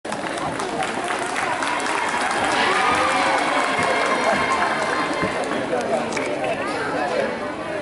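A large choir sings together outdoors.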